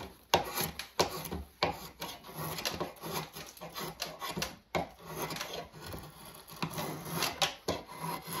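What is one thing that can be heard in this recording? A drawknife scrapes and shaves wood in repeated strokes.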